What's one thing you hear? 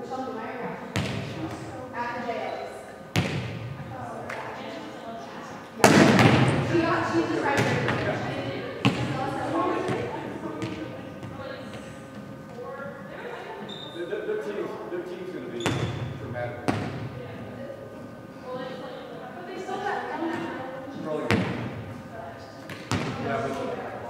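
A volleyball thumps off hands and bounces on a wooden floor.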